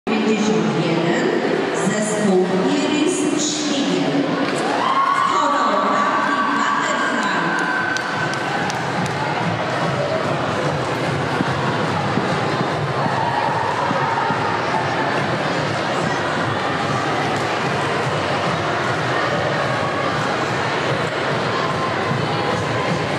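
Music plays loudly through loudspeakers in a large echoing hall.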